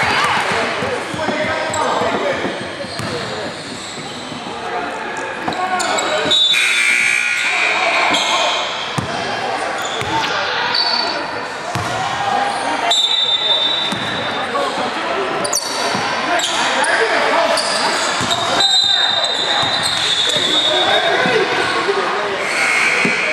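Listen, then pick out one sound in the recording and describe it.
Spectators talk and call out in a large echoing gym.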